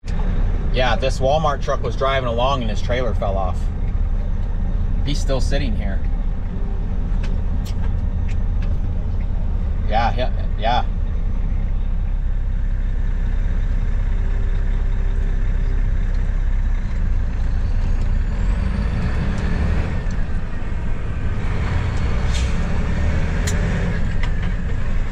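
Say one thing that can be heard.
A vehicle's engine hums steadily with road noise from inside the cab.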